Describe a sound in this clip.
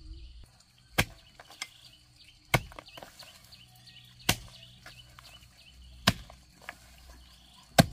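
A hoe thuds into dry soil again and again, close by.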